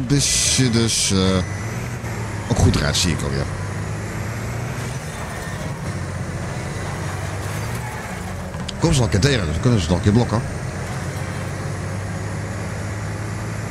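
A vehicle engine roars steadily.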